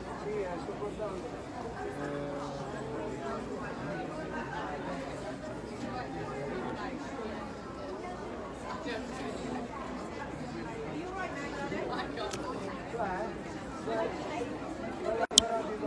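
A crowd of men and women chatter steadily in a large echoing hall.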